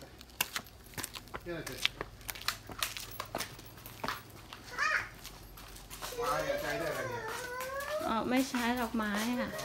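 Footsteps in sandals slap on a paved path.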